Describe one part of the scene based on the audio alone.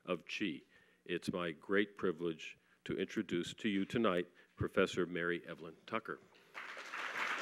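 An elderly man speaks calmly into a microphone in a large hall.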